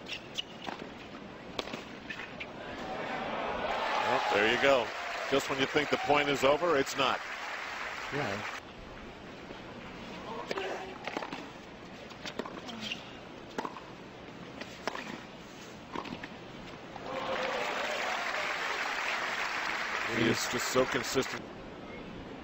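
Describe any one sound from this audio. Tennis balls are struck with sharp pops of a racket.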